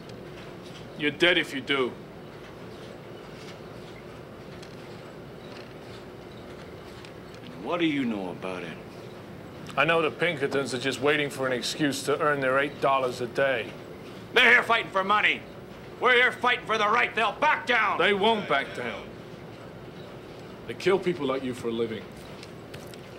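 A man speaks firmly and loudly in short bursts.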